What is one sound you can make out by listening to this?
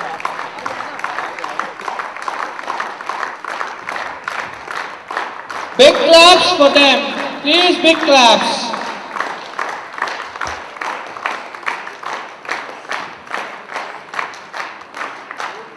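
A crowd claps steadily.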